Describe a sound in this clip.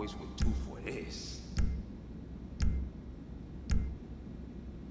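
A game menu clicks with a short thud at each selection.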